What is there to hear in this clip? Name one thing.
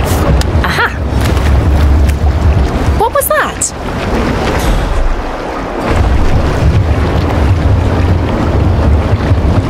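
Water sloshes and splashes as a man wades slowly through the shallows.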